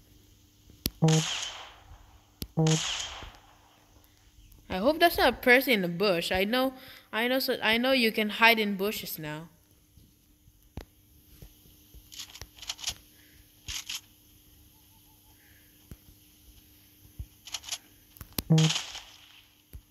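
Gunshots crack in short single bursts.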